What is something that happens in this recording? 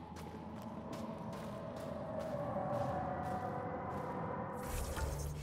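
Footsteps crunch through snow at a steady pace.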